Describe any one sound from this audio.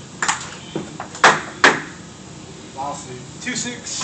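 A ping-pong ball bounces on a hard floor with quickening taps.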